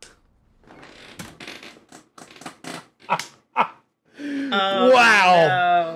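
A woman laughs softly nearby.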